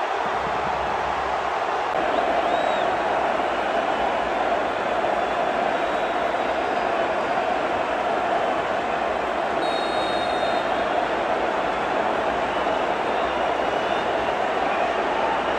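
A group of men sing together loudly outdoors in a large stadium.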